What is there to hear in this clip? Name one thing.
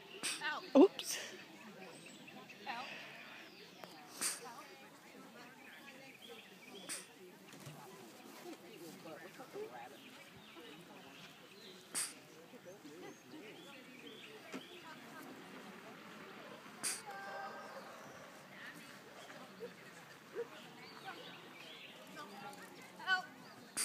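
A woman calls out commands to a dog from a distance outdoors.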